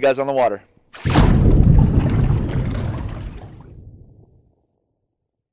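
Water splashes and bubbles, then slowly fades.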